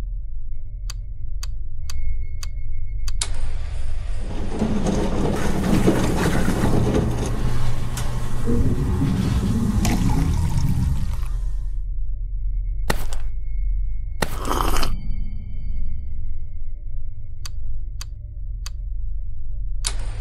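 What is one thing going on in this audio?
Keys click as letters are typed on a keypad.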